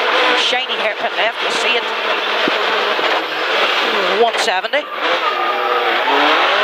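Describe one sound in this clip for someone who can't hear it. A rally car engine roars and revs hard up and down.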